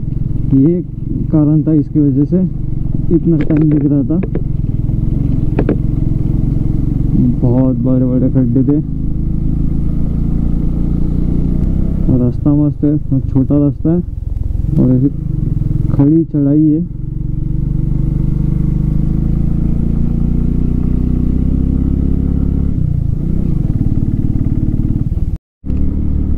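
A motorcycle engine hums steadily as the bike rides along.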